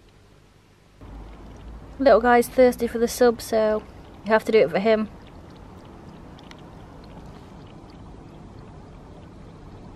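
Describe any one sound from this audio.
A cat laps water from a bowl.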